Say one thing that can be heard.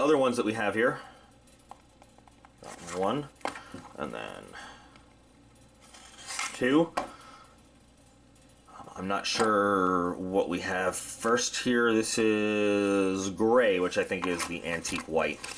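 Cardboard boxes slide and tap on a wooden table.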